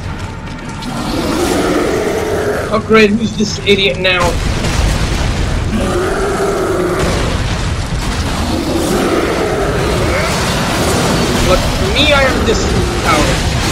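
A monster growls and roars deeply.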